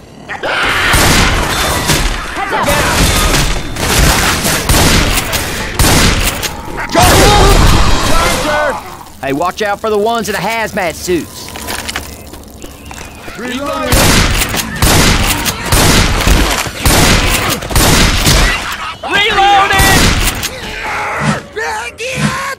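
A shotgun fires in loud, sharp blasts.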